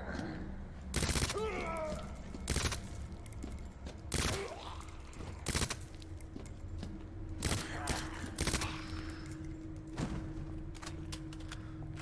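Gunshots ring out one after another.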